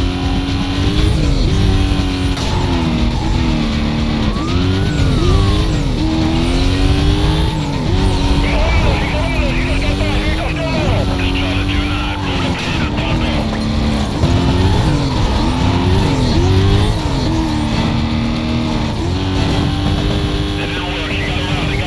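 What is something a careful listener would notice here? A car engine roars at high revs, rising and dropping as the gears shift.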